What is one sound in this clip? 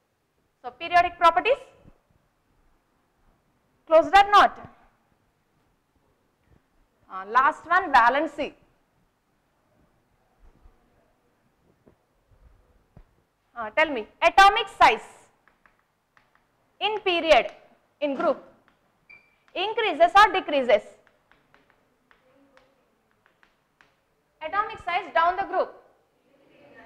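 A woman speaks clearly in short bursts, as if explaining.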